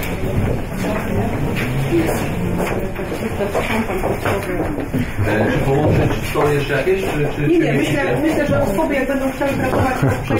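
Several men and women talk at once nearby, their voices overlapping.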